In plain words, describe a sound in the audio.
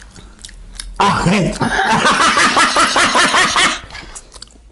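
A young woman laughs loudly.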